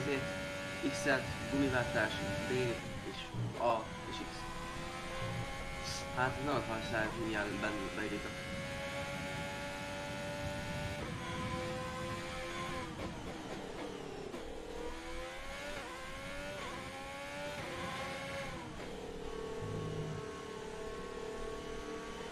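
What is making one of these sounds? A racing car engine whines and revs up and down as gears shift.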